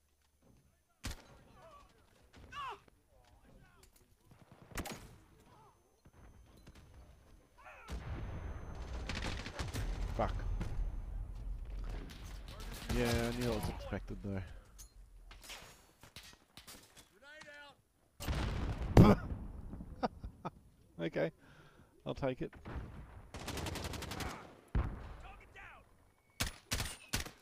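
Rifle shots ring out in short bursts.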